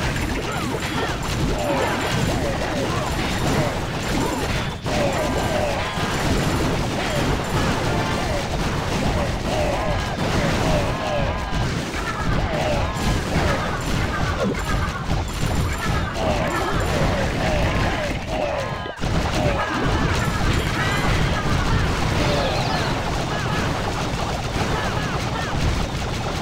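Explosions and blasts crackle without pause in a busy battle.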